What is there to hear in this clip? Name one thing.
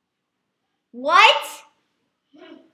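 A boy shouts excitedly.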